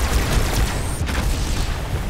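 A loud blast booms nearby.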